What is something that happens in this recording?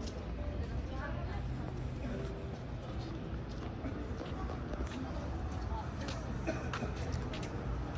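Distant voices of passers-by murmur.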